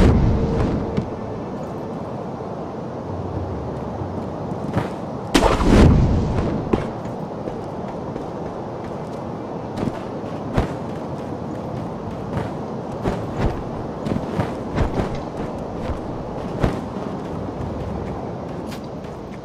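Footsteps run and scuff over rooftops and ground.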